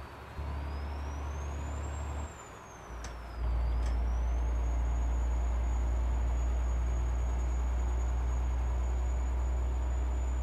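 A heavy truck engine drones steadily, dipping briefly before swelling louder.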